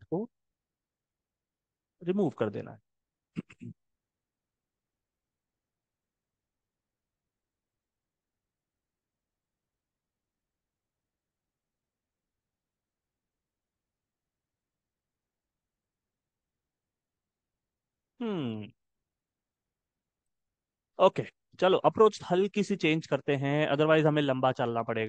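A man speaks calmly into a microphone, in short bursts with long pauses.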